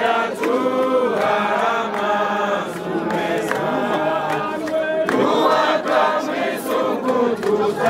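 A crowd sings together loudly outdoors.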